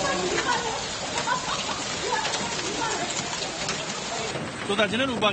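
Hail patters and clatters on hard ground.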